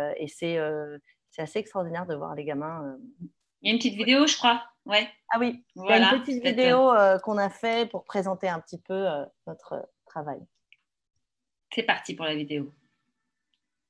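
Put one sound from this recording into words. A woman talks calmly and brightly over an online call.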